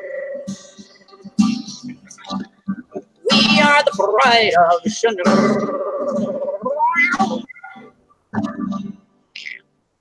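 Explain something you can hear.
Several people talk with animation over an online call.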